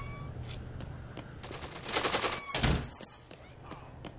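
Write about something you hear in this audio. A door swings open with a thud.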